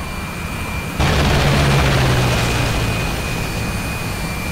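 A jet engine roars louder as afterburners light.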